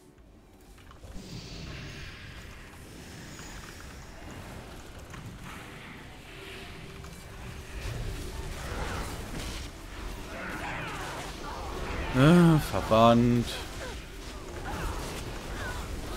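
Magic blasts and impacts crackle and boom in a battle.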